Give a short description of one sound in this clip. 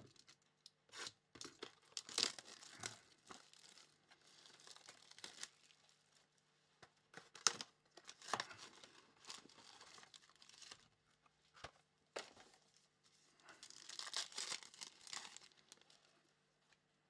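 Plastic and foil wrapping crinkles and rustles in hands.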